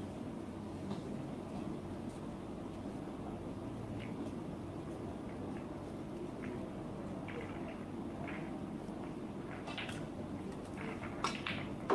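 Snooker balls click softly against each other as they are set on the table.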